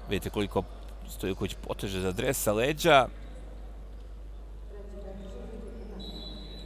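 Shoes squeak on a wooden court.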